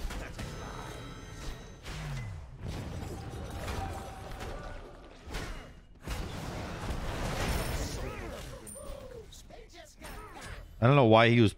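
Game sound effects clash and whoosh.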